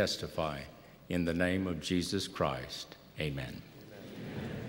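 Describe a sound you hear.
An elderly man speaks calmly into a microphone in a large echoing hall.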